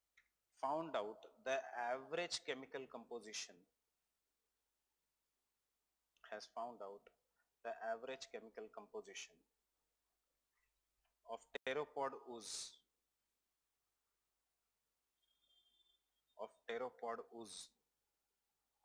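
A man speaks calmly through a microphone, in short bursts with pauses.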